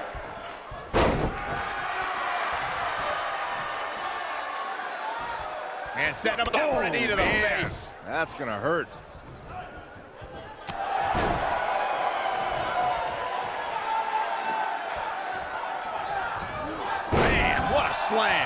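Heavy bodies slam with loud thuds onto a wrestling ring.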